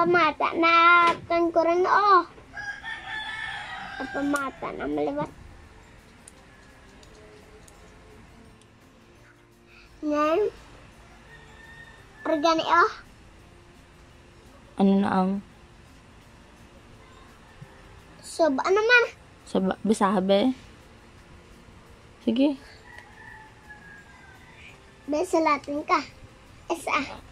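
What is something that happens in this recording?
A young girl talks close by in short bursts.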